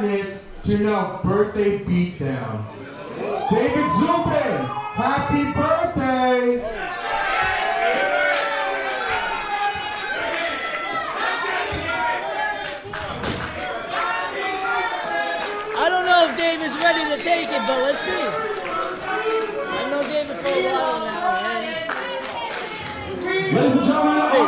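A man speaks loudly into a microphone, heard through loudspeakers in an echoing hall.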